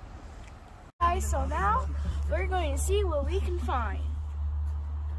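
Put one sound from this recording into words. A young girl talks nearby with animation.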